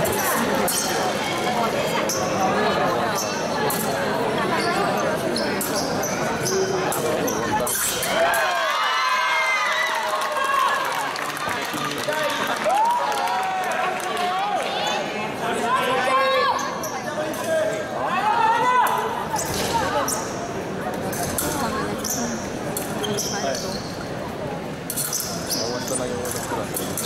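Shoes squeak and thud on the floor as fencers lunge.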